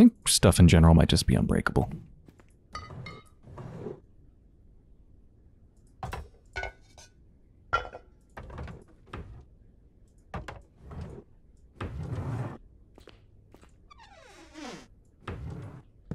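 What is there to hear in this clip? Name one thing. Wooden drawers slide open and bump shut.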